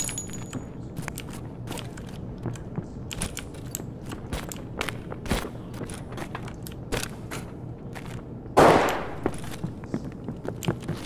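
Footsteps tread steadily on a hard, gritty floor.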